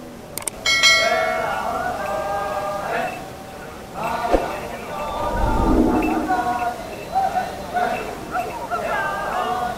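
A large group of men chants together in unison outdoors.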